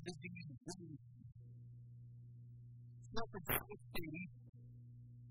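A middle-aged man speaks with animation through a microphone, heard over loudspeakers.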